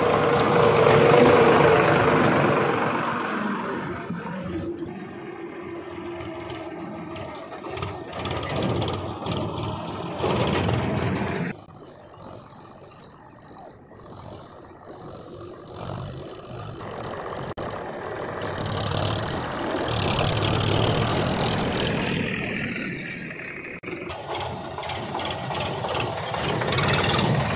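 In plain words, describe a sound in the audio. A tractor engine rumbles close by, rising and falling as it drives past.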